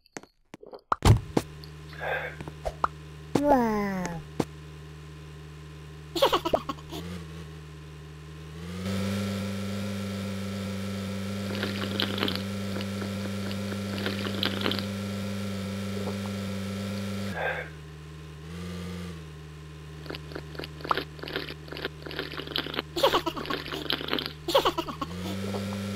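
A small car engine hums steadily, growing louder as the car drives.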